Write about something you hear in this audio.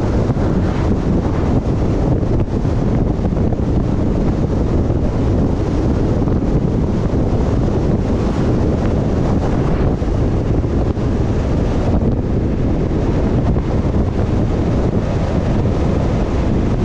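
A vehicle engine hums steadily while driving on a road.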